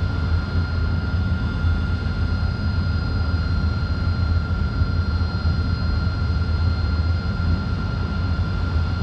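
A jet engine idles with a steady low rumble and a thin high whine.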